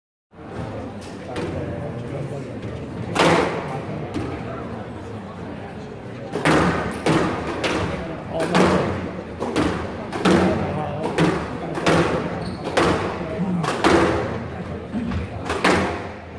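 A squash ball smacks hard against the walls in an echoing court.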